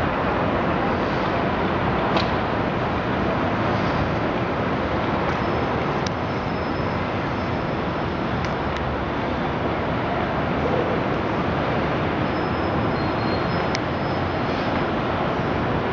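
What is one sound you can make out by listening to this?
Distant city traffic hums steadily far below.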